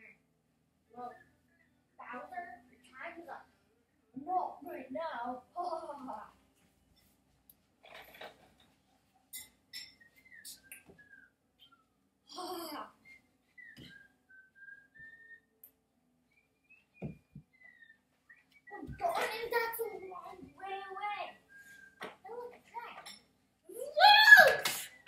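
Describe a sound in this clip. Young children talk and shout with animation nearby, in a quiet room.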